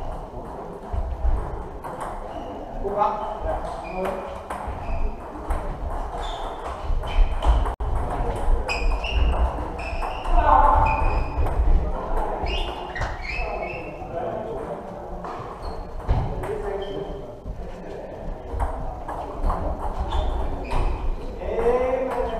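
Table tennis balls click rapidly on tables and bats in a large echoing hall.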